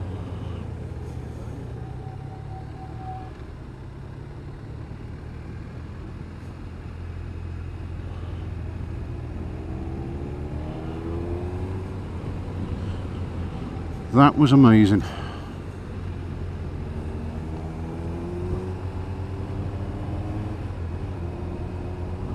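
A motorcycle engine hums steadily and rises and falls in pitch.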